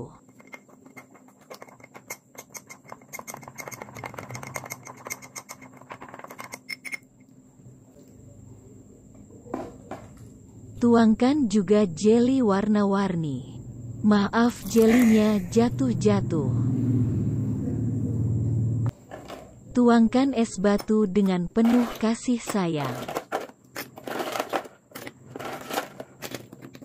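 A metal spoon clinks against a glass while stirring.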